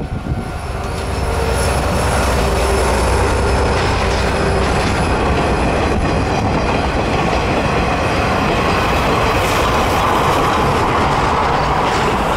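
Train wheels clatter loudly over the rails.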